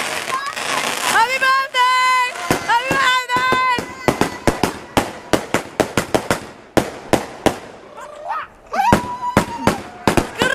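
Fireworks whistle shrilly as they shoot up.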